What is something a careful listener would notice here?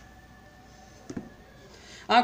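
A light object is set down on a table with a soft tap.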